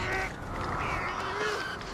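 Birds flap their wings as they fly off.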